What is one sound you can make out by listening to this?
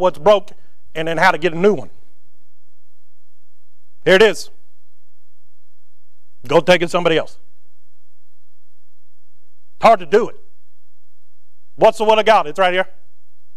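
A man preaches through a microphone in short bursts with long pauses, in a large echoing hall.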